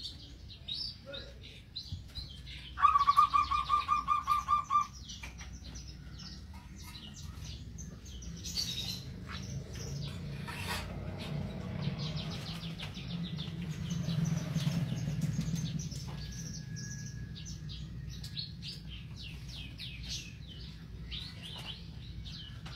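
Small caged birds chirp and twitter nearby.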